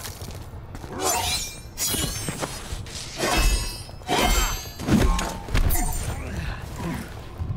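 Heavy blows land with thuds and cracks.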